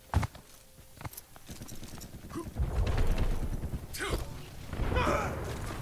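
Footsteps run quickly and steadily.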